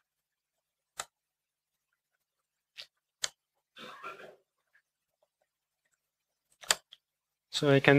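Computer keys click in short bursts.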